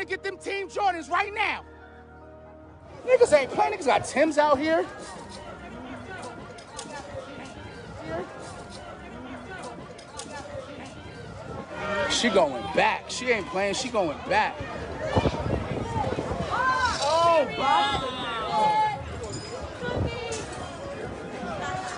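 Several people shout and talk excitedly nearby.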